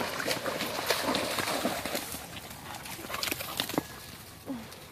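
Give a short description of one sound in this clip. A dog rustles through undergrowth.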